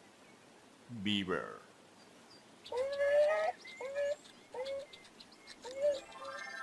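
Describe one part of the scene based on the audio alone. A beaver squeals and chatters.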